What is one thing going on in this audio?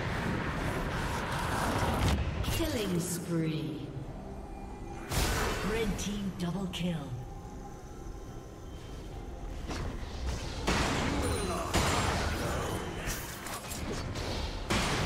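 Magic blasts burst and crackle in a fast fight.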